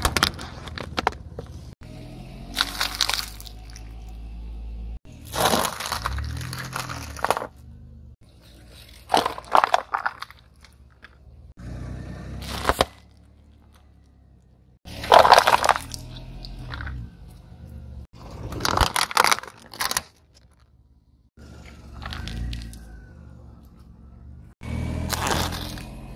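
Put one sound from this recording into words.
A car tyre rolls over plastic objects, crushing them with loud cracks and crunches.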